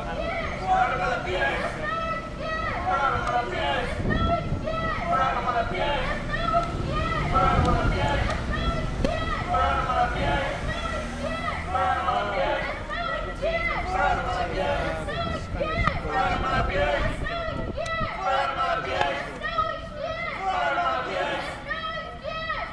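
A crowd of protesters chants outdoors.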